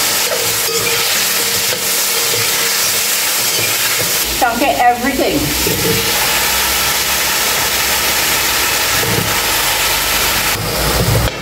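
Food sizzles in a hot pan.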